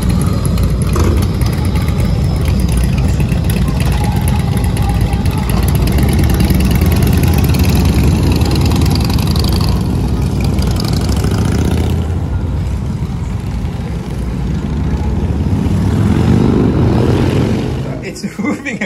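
Motorcycle engines rumble loudly as a group of bikes rides past.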